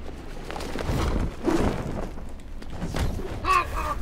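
Heavy punches thud in a brawl.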